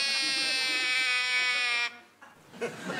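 A plastic tube toy gives a long, steady whistling tone.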